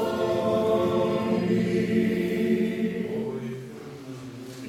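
An elderly man chants in a deep, sustained voice in an echoing hall.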